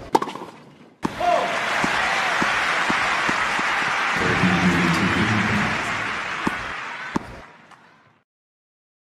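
A large crowd applauds loudly, then the applause fades away.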